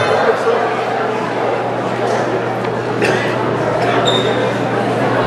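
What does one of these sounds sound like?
A man speaks through a microphone and loudspeaker, announcing loudly.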